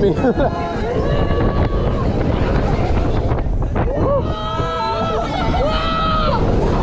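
Young riders scream and shriek with excitement nearby.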